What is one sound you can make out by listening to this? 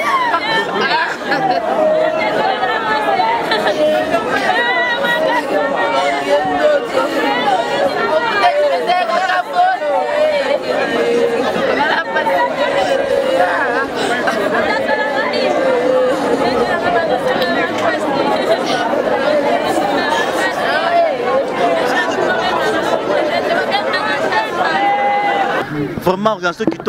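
A crowd of women sings a slow, mournful song together.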